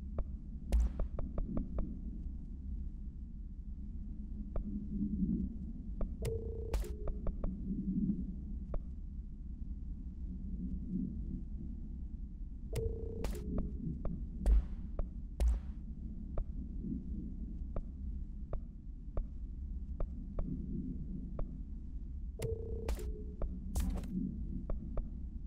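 Short electronic interface clicks tick now and then.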